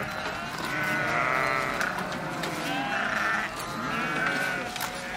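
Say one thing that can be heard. Goats tear and munch grass close by.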